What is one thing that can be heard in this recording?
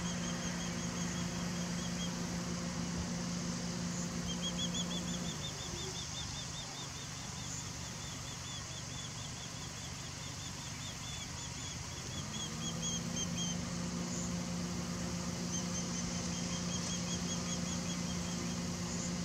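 A bird of prey calls in quick, high, repeated chirps.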